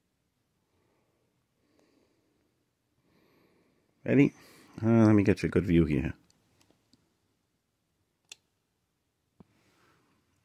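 Metal clips click against a battery.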